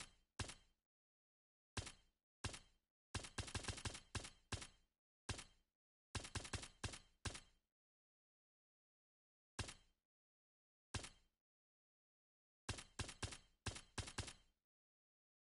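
Short menu clicks tick in quick bursts as selections change.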